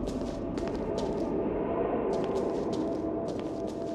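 A group of women murmur prayers together in a large echoing hall.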